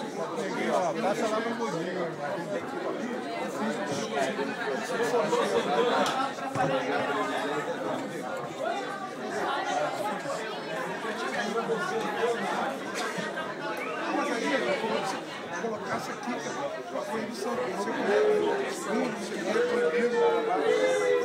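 Many people chatter at once in a busy room.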